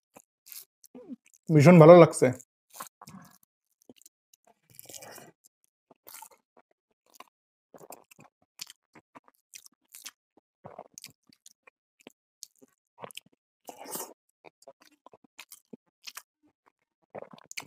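Fingers squish and mix rice on a metal plate.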